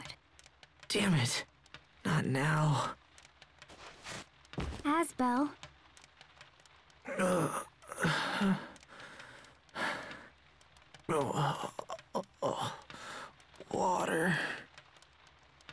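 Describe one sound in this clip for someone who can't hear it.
A young man groans and pants weakly.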